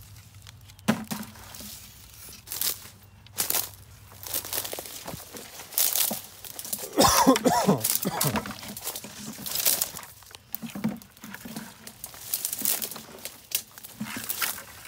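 Litter knocks about inside a plastic bucket.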